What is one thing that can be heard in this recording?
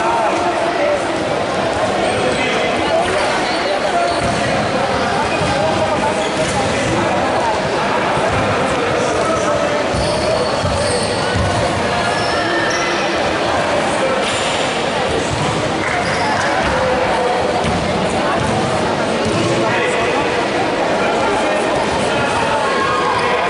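A crowd of young men chatters in a large echoing hall.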